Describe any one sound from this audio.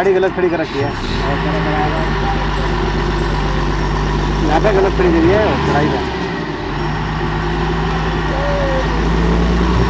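A large vehicle's engine idles nearby with a low steady rumble.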